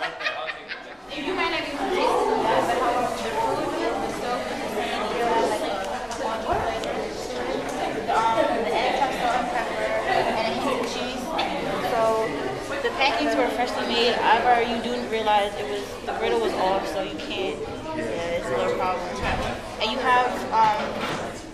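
A young woman talks with animation close by.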